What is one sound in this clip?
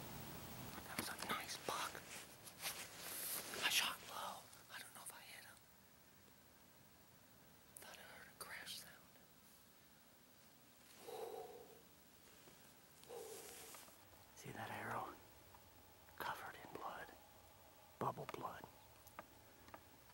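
A man speaks quietly and closely, in a hushed voice.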